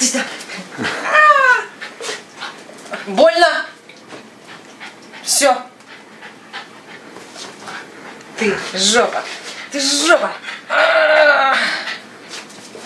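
A dog whines in short, high yelps.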